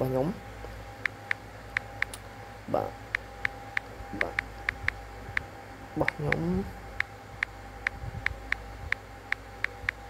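A phone keyboard gives short, quick clicks with each key tap.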